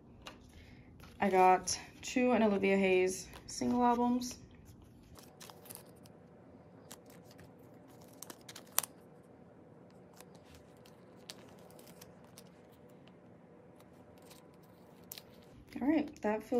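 Plastic card sleeves rustle and crinkle softly as cards are slid in and out.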